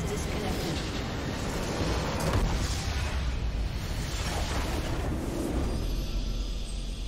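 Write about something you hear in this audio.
A crystal structure shatters with loud booming explosions.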